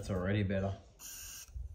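A spray can hisses briefly.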